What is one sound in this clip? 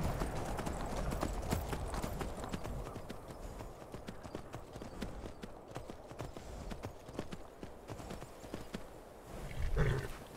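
Horse hooves thud rapidly on snow.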